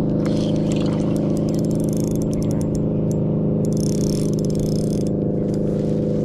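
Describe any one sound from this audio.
A fishing line winds onto a spinning reel.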